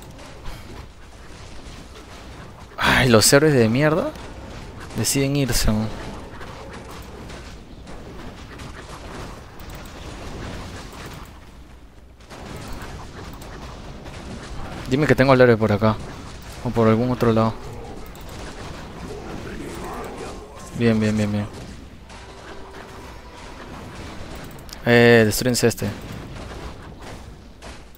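Weapons clash and spells crackle in a game battle.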